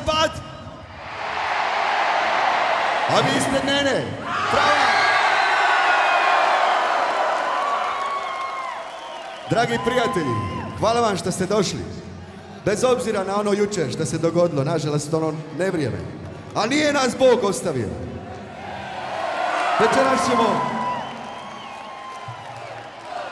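A large crowd cheers and sings along.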